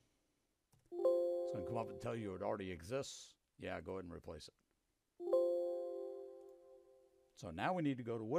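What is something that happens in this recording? A computer alert chime rings twice.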